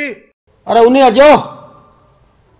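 A middle-aged man speaks loudly and with feeling, close by.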